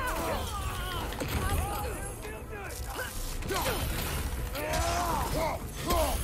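Heavy weapon blows thud and clang in a fight.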